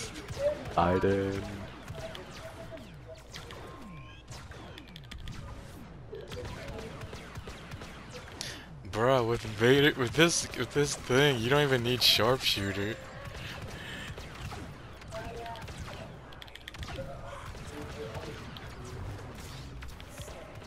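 Laser guns fire in quick bursts.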